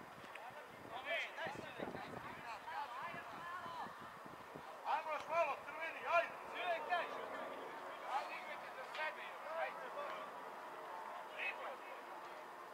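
Young men call out to each other from across an open outdoor field.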